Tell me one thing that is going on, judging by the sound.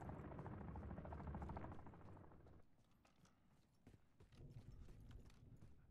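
Footsteps crunch over loose rocks and gravel.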